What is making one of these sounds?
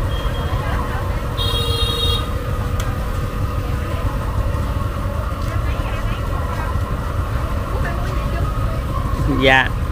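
A busy outdoor crowd murmurs with many voices in the background.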